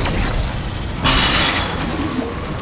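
A loud blast bursts out suddenly.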